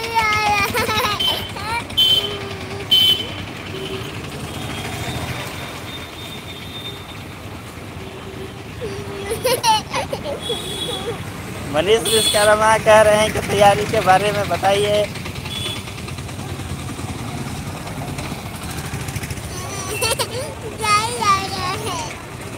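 A toddler laughs and babbles close by.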